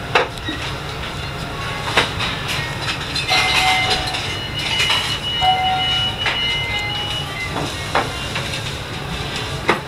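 Men and women talk in a low murmur in a busy room.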